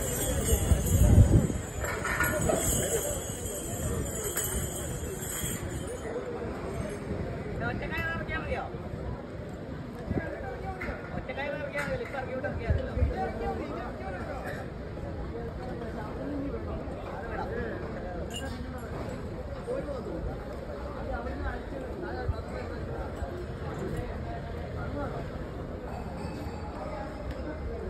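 People chatter in a low murmur outdoors, some distance away.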